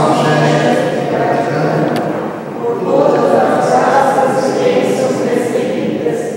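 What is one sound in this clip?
A man speaks calmly through a microphone, echoing in a large hall.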